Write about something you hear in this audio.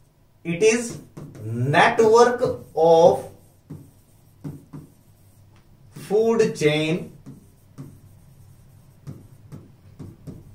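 A marker taps and scratches on a board.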